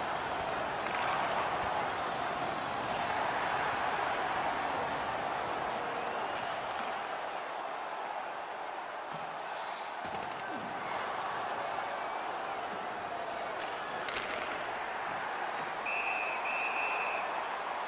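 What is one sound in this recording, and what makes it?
Sticks click against the puck.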